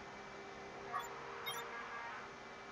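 A soft electronic menu blip sounds twice in quick succession.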